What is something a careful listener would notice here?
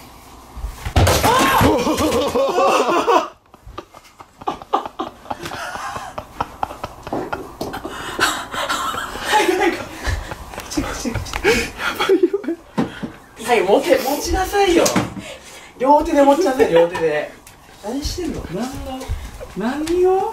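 Young men talk and laugh loudly nearby.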